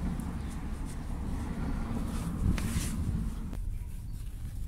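A cloth rubs softly over a car's smooth bodywork.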